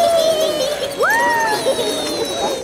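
A man cries out in alarm.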